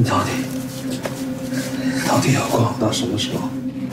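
A young man pleads in a shaky voice.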